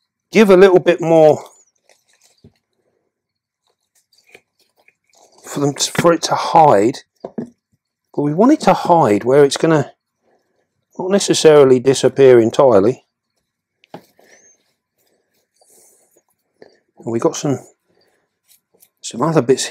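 A middle-aged man talks calmly close by, in short bursts with pauses.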